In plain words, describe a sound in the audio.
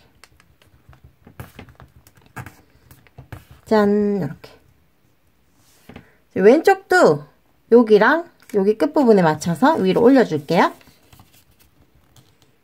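Paper crinkles and rustles softly as it is folded and creased.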